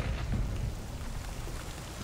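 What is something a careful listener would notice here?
Thunder rumbles.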